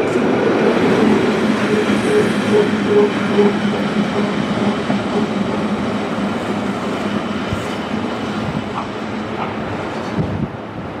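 An electric locomotive hums loudly as it passes close by.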